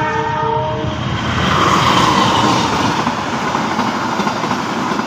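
A train rumbles past close by, its wheels clattering on the rails.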